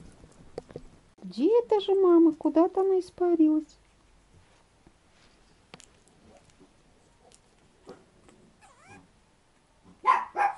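Puppies scuffle and paw at each other.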